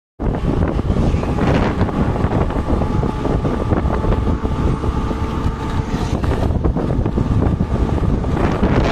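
Wind buffets loudly against a microphone.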